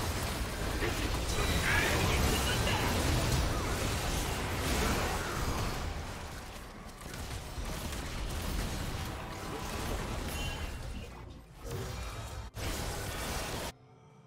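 Video game spell effects whoosh and crackle in rapid bursts.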